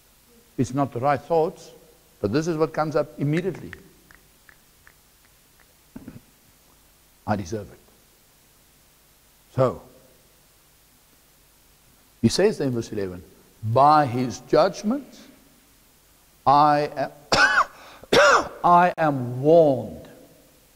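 A middle-aged man speaks with animation through a microphone, pausing often.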